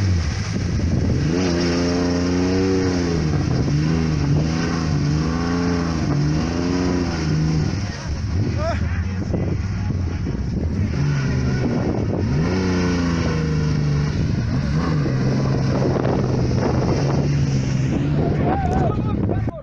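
A vehicle's engine revs up and down as it drives slowly.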